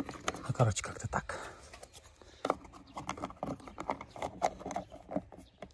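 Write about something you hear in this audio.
A plastic box lid clicks and taps under a hand.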